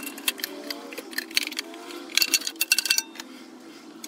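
Metal parts clink and tap.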